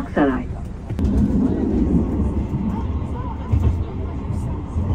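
A tram rumbles along its rails.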